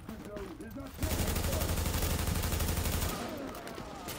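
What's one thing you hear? Automatic gunfire rattles in a loud, steady burst.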